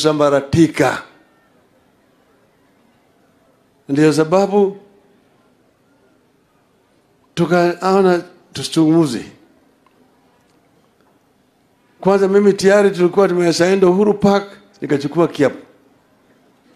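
An elderly man speaks loudly through a microphone in short bursts with pauses.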